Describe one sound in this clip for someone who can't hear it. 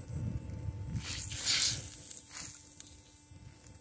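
A metal spatula scrapes and stirs in a metal pan.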